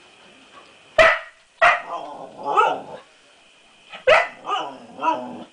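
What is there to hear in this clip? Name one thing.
A dog barks and howls loudly nearby.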